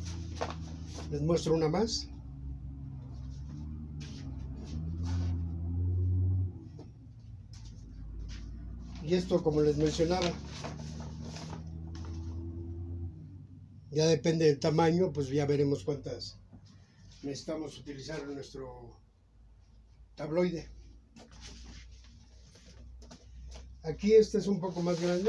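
A paper bag rustles in a man's hands.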